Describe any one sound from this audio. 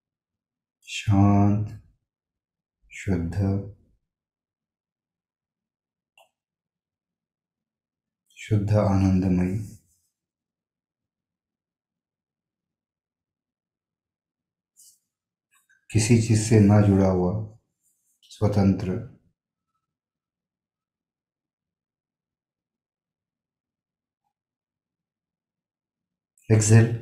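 An elderly man speaks calmly and slowly in short phrases through a microphone, with long pauses.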